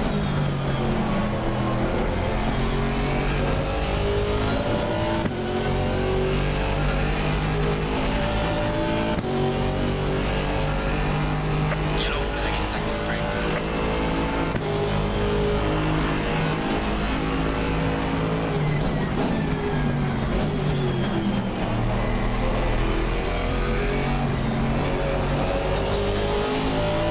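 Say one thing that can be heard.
A racing car engine roars loudly, rising in pitch through the gears and dropping as it slows.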